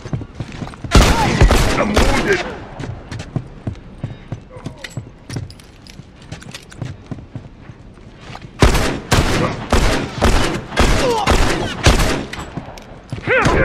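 Rapid gunshots crack loudly in bursts.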